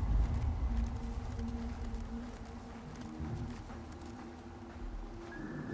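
Dry branches and brush rustle as someone crawls through them.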